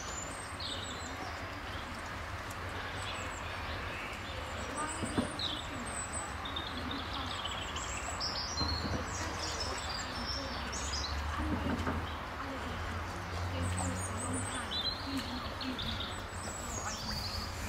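Small otters chirp and squeak in high, short calls.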